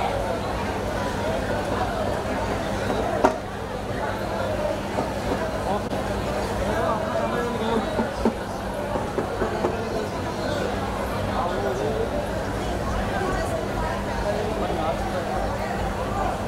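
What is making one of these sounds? A crowd of women and men chatter nearby.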